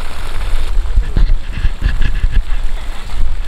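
Wooden poles knock against a bamboo raft.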